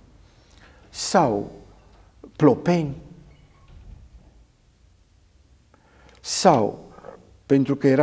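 An elderly man speaks with animation in short bursts, close to a microphone.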